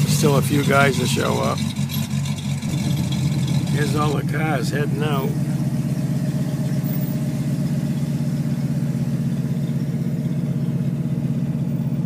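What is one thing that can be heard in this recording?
A hot rod engine rumbles deeply and steadily.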